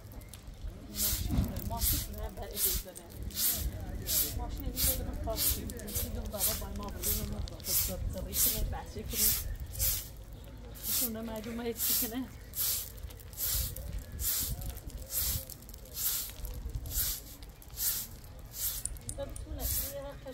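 A broom sweeps the ground in quick, rhythmic strokes.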